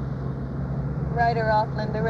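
A woman replies while driving.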